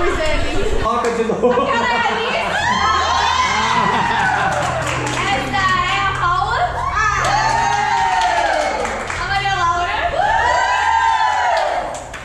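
A crowd of young women shouts and cheers.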